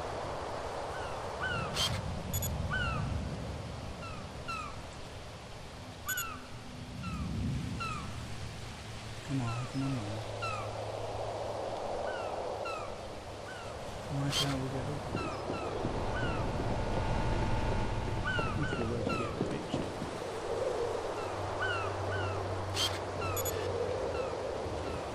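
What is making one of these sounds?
Water laps gently all around.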